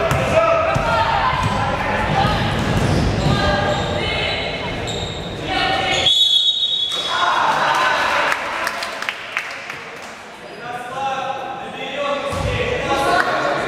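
Children and teenagers chatter and call out in a large echoing hall.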